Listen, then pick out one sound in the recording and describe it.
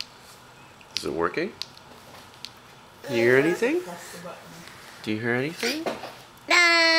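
A toddler babbles and coos up close.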